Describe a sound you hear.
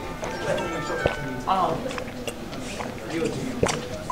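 A young man gulps down a drink.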